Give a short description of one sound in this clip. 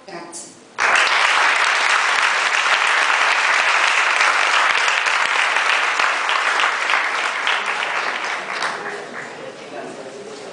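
An audience applauds loudly in a room, then the clapping slowly fades.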